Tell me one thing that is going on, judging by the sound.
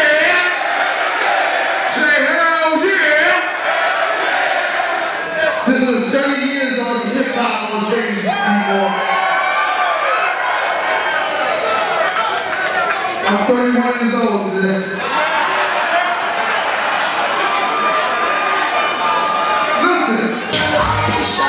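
A man raps loudly into a microphone over a loudspeaker, with echo.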